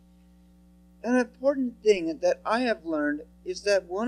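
A young man speaks steadily into a microphone, heard through a loudspeaker in a room.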